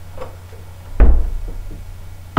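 A door thuds shut.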